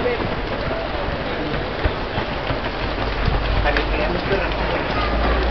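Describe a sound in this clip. Many running feet patter and slap on a paved street.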